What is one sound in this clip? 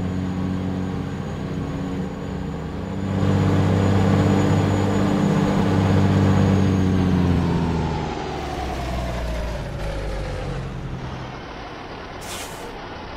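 A truck's diesel engine rumbles steadily, growing louder and then easing off.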